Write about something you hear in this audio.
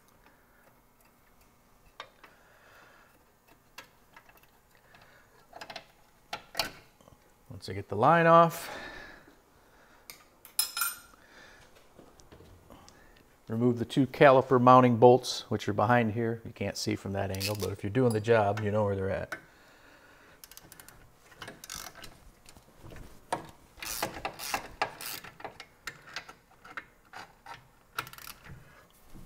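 Metal tools clink and tap on car brake parts.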